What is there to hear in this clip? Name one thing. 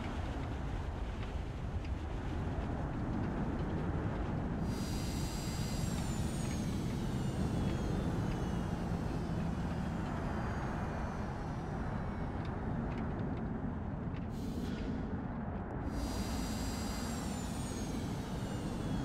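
A plane's wheels rumble over a paved runway.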